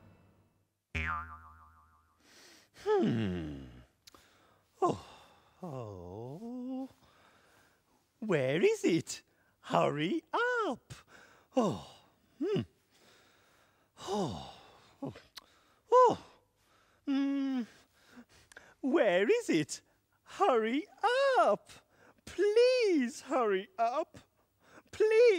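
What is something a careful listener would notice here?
A male character voice talks in a silly, animated way, swooping up and down in pitch.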